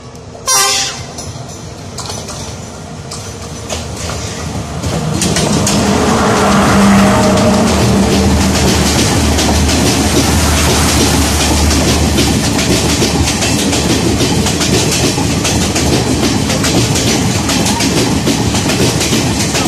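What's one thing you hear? Train wheels clatter rhythmically over rail joints.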